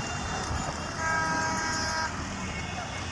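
A motor rickshaw horn honks once, steadily.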